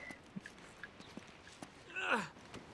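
Footsteps patter lightly on stone.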